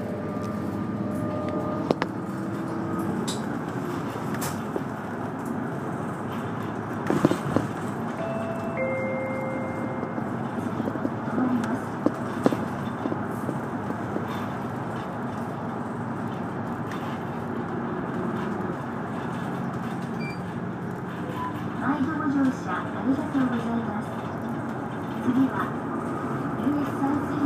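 A vehicle rumbles steadily along a road from inside the cabin.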